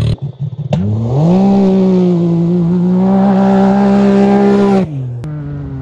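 A turbocharged side-by-side engine revs hard in the distance.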